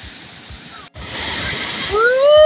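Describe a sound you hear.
A waterfall pours loudly close by.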